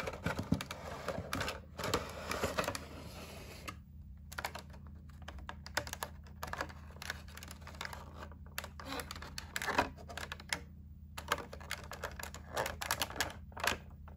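A clear plastic case crinkles and clicks as it is handled.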